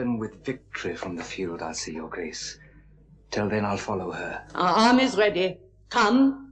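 A young man speaks clearly and calmly.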